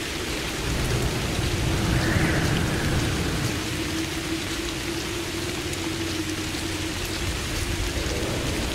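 Footsteps run on a hard wet surface.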